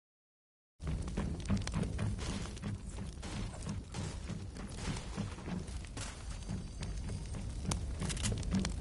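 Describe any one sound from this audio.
Flames crackle and hiss close by.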